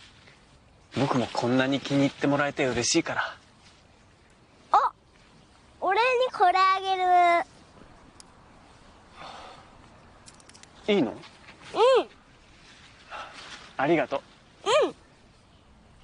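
A young man speaks softly and warmly.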